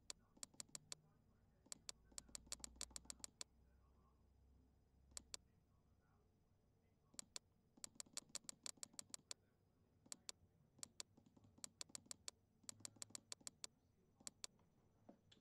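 Electronic keypad buttons click in quick bursts.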